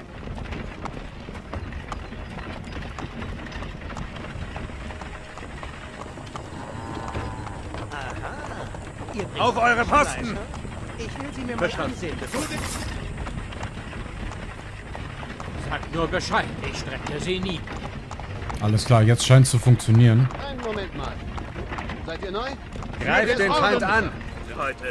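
Wooden cart wheels rumble steadily over a dirt road.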